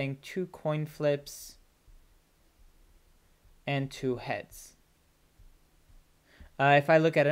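A man speaks calmly and explains into a close microphone, in short bursts with pauses.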